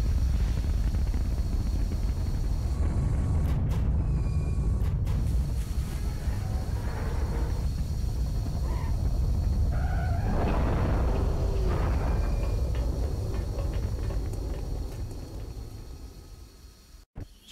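An aircraft engine hums with a deep, steady roar.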